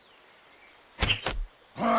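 Video game combat sound effects thump and clang.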